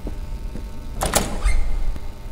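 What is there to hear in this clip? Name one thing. A pair of swinging doors bangs open.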